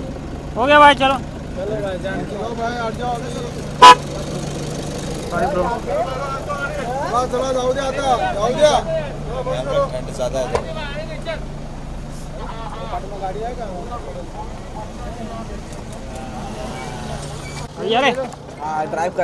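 Several men shout and call out close by.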